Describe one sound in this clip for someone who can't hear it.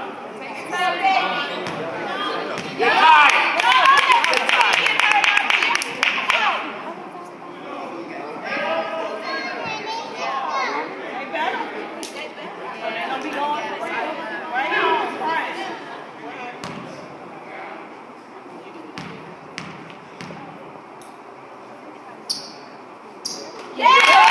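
Spectators nearby talk and cheer in a large echoing gym.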